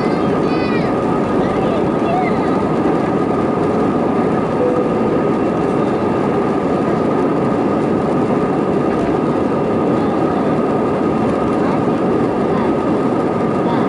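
Jet engines of an Airbus A320 roar in a climb, heard from inside the cabin.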